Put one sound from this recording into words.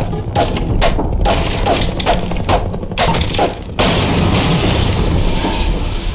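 Wooden boards splinter and crack apart.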